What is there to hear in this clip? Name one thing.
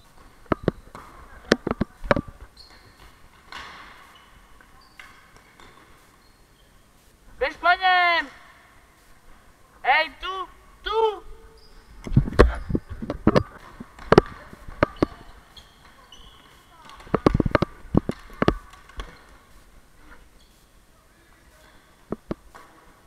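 Floorball sticks clack against a plastic ball and each other.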